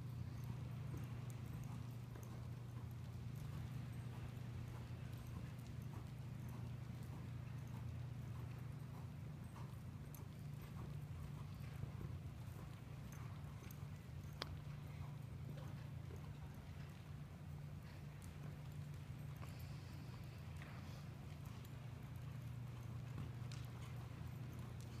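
Horse hooves thud softly on soft dirt at a steady trot.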